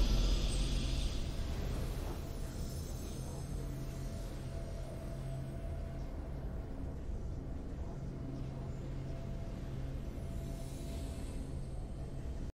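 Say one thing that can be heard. Triumphant game music swells and then plays steadily.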